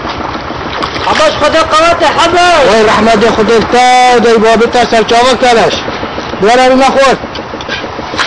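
A middle-aged man shouts loudly and angrily close by.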